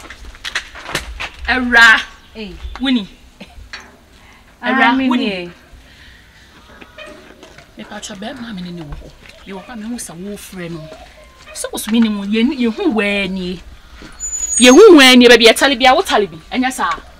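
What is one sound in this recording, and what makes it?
A young woman speaks loudly and with animation nearby.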